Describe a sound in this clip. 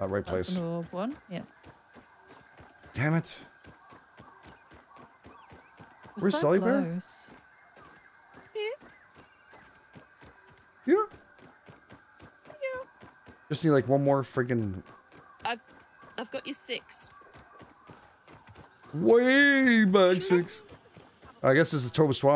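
Quick, light footsteps patter on dry ground.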